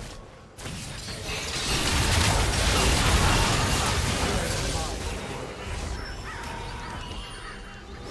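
Magic spell effects crackle and burst in a fight.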